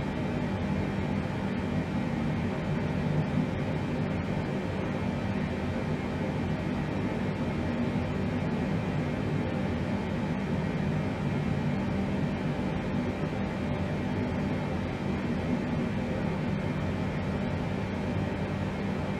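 A steady low drone fills an aircraft cockpit in flight.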